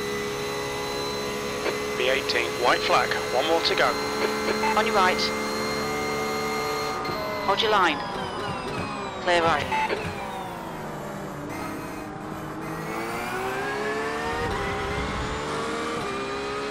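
A racing car engine whines steadily, its pitch dropping and rising as the car slows and speeds up.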